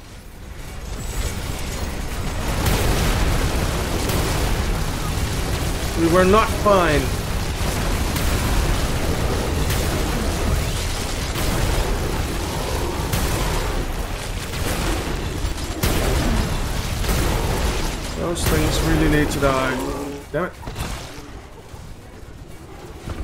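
Explosions boom and rumble heavily throughout a dense battle.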